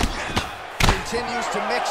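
A kick lands on a body with a sharp smack.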